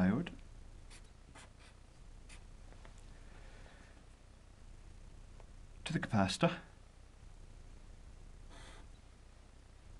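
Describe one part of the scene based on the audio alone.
A felt-tip marker scratches briefly on paper.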